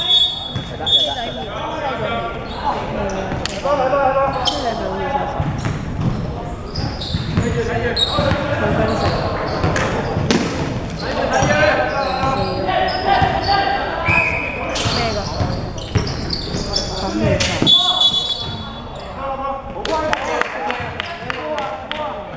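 Young men call out and shout to each other.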